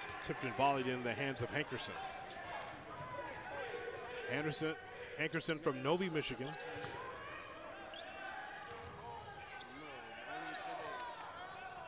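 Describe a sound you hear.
A basketball bounces repeatedly on the court.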